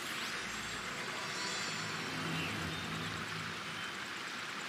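A soft chime rings out as a quest begins.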